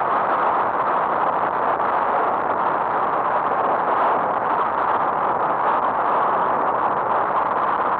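A car's engine hums steadily as it drives along a road.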